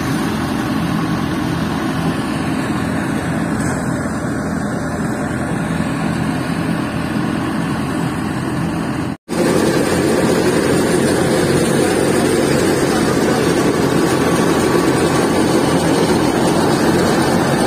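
Straw rustles as it is pitched into a threshing machine.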